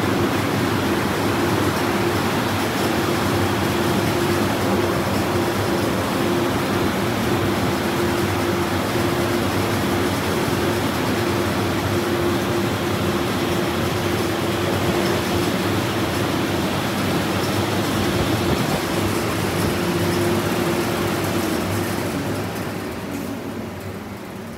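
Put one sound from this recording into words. A car wash dryer blower roars loudly and steadily.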